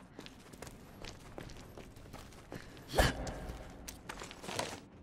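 Footsteps crunch slowly on gritty debris.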